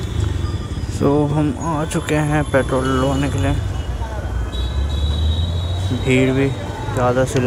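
A man talks loudly close by.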